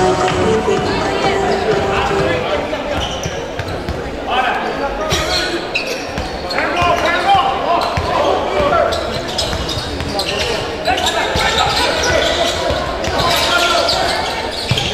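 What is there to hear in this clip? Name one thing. Spectators chatter and shout in a large echoing hall.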